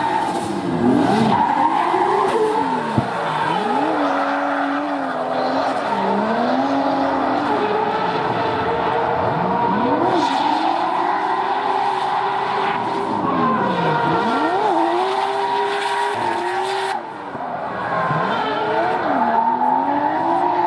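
A car engine revs hard, rising and falling over and over.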